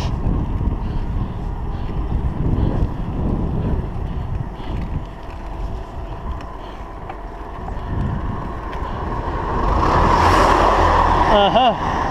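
Wind buffets the microphone of a cyclist riding along a road.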